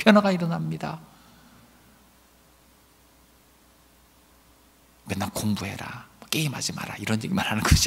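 A middle-aged man speaks with emphasis into a microphone, pausing between phrases.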